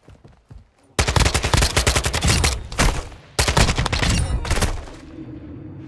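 A rifle fires rapid bursts at close range.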